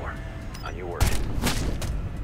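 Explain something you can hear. A suppressed rifle fires a single sharp shot.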